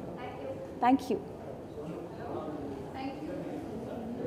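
A young woman speaks calmly into microphones up close.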